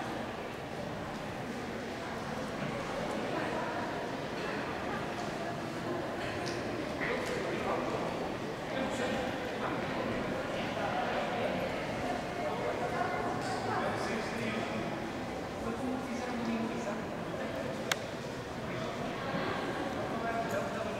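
A man talks calmly at a distance.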